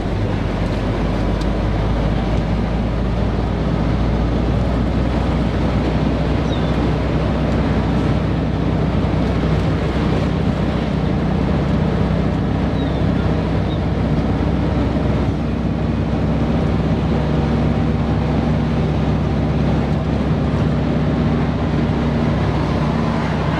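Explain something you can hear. An old bus engine drones steadily and loudly while driving.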